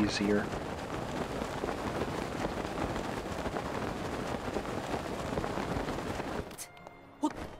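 Wind rushes loudly past a glider.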